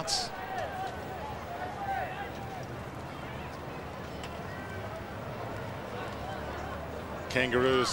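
A large stadium crowd murmurs and shouts outdoors.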